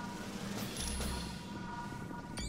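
Magic spells crackle and chime in a fight.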